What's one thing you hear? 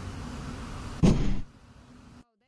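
A hamper lid thuds shut.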